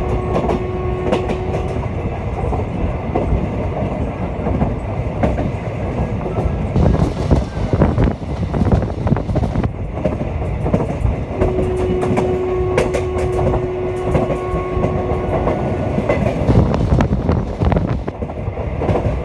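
A passenger train rolls along the track, heard from an open window.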